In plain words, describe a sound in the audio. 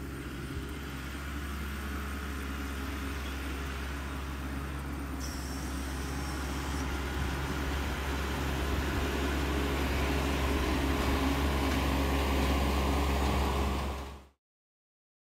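A tractor engine rumbles steadily and grows louder as it approaches.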